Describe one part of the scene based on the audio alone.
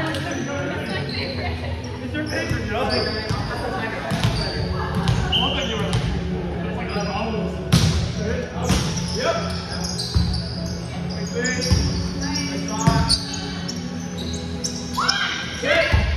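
Young men and women call out and talk with animation across an echoing gym.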